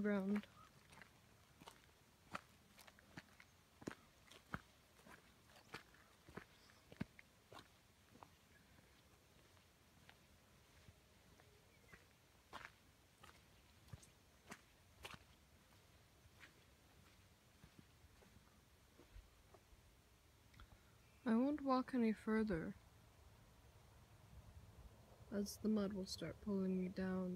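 Footsteps crunch on dry grass outdoors.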